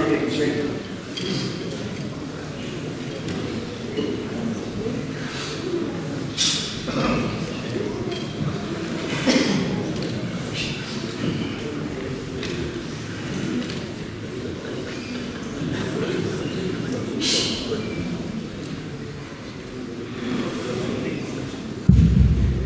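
Men chat and murmur quietly among themselves.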